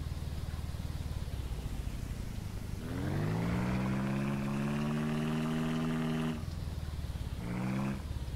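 A small engine putters steadily at idle.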